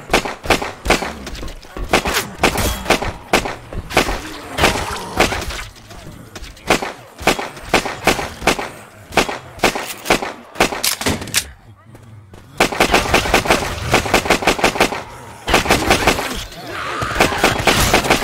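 Rapid gunshots fire in bursts, ringing off the walls.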